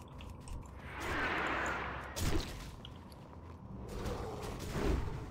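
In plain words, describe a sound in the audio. Spell effects whoosh and crackle.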